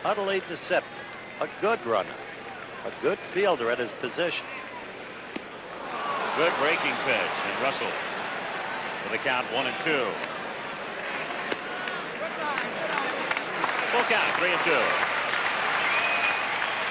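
A large crowd murmurs and cheers in an open stadium, growing louder partway through.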